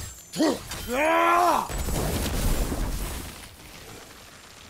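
A fiery explosion booms and rumbles.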